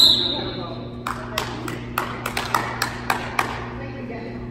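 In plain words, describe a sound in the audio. A basketball bounces repeatedly on a hard floor in an echoing gym.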